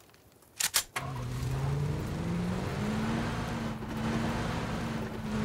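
A car engine starts and revs steadily.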